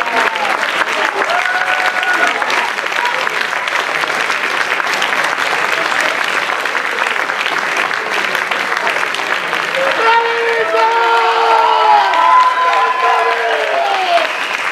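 A crowd applauds with steady, lively clapping in a large hall.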